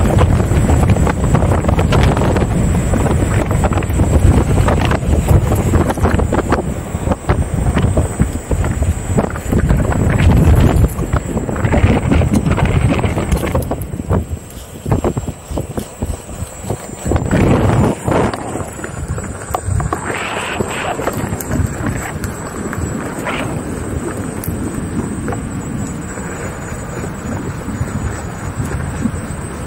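Small tyres hum and rumble over pavement.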